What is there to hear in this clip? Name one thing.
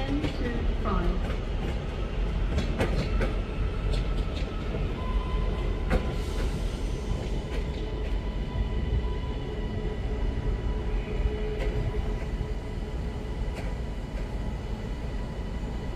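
A train rumbles past at low speed.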